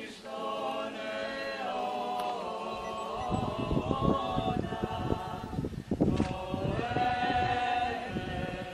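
Men's voices chant together in a slow, sustained hymn outdoors.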